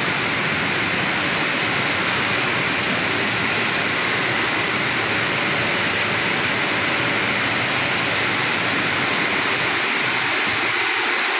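Water sprays and hisses steadily over jars.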